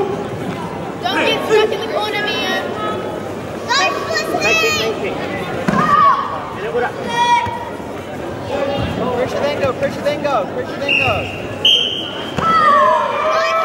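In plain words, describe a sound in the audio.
Young female fighters let out sharp, short shouts as they spar.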